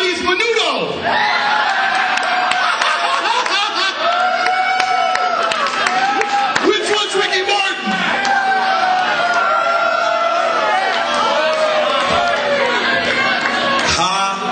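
Men sing together into a microphone over a loudspeaker.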